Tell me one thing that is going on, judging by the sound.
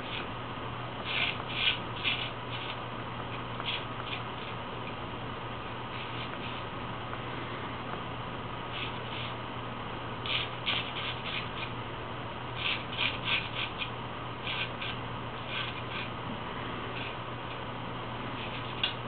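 A straight razor scrapes through stubble in short, rasping strokes.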